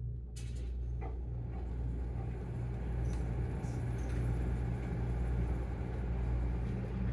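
Air rushes steadily through a vent.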